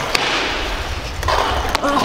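A skateboard grinds along a metal rail.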